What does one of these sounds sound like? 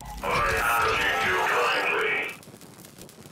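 An electronic energy device hums and crackles loudly, then cuts off.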